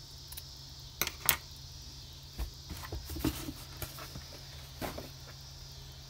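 Small objects knock lightly on a tabletop.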